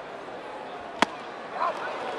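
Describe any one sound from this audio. A baseball smacks into a catcher's mitt with a sharp pop.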